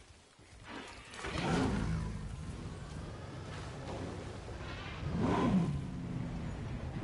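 A large dinosaur roars loudly.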